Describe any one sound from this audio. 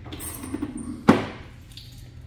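A van door slams shut with a sharp bang.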